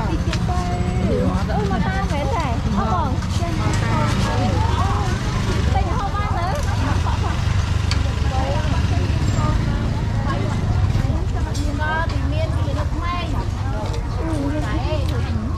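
Many people chatter all around in a busy outdoor market.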